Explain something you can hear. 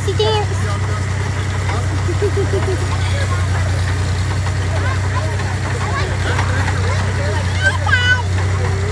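Several people chatter nearby.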